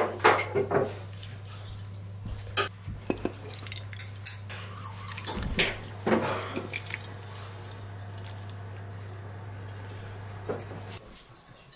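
Soup splashes and pours into a bowl.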